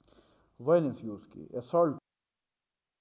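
A man speaks calmly into microphones.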